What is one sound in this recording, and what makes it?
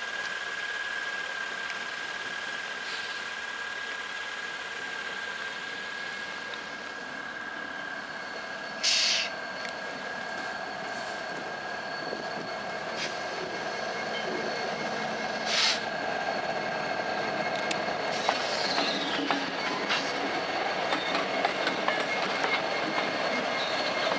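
A diesel locomotive rumbles as it approaches and passes close by.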